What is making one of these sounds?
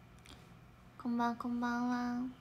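A young woman speaks close to a microphone in a high, drawn-out voice.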